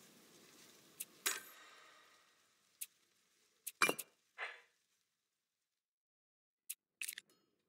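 Short game menu clicks and chimes sound now and then.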